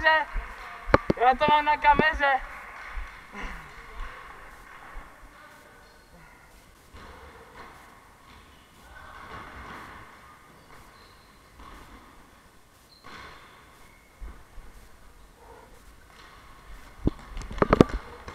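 Floorball sticks clack against a ball.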